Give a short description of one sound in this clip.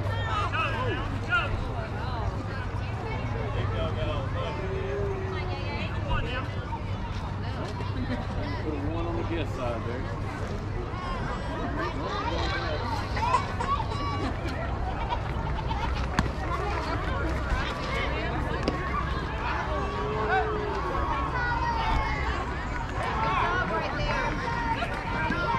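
Children and adults shout and cheer across an open field.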